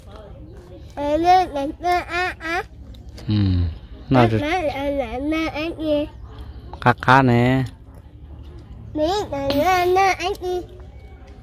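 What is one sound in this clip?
A young girl talks and babbles in a high voice close by.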